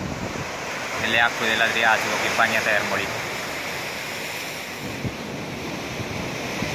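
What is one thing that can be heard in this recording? Wind blows strongly outdoors, buffeting the microphone.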